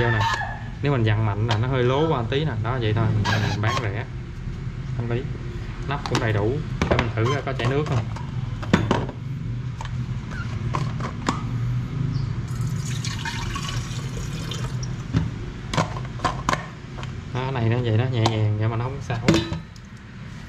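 Plastic lids click and knock as they are handled and set down.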